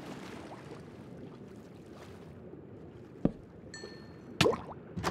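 Water swishes steadily as a swimmer moves through it.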